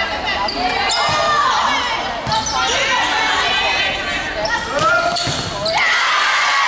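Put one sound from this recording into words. A volleyball is smacked with sharp slaps.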